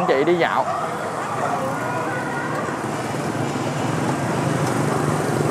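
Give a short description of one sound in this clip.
Motorbike engines hum and drone as they pass close by on a busy street.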